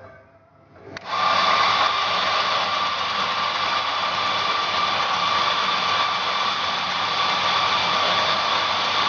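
An electric coffee grinder whirs steadily.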